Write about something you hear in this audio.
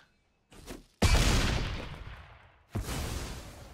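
A game sound effect thuds and whooshes as a card is played.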